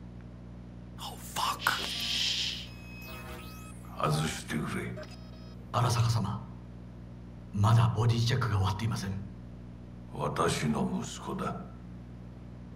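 A second man answers calmly from nearby.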